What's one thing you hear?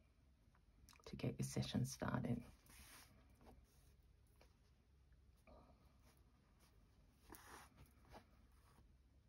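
Cloth rustles softly as hands handle it up close.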